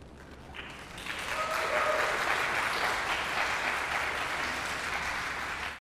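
A choir sings in a large echoing hall.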